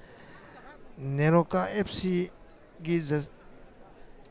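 A crowd cheers loudly in a stadium.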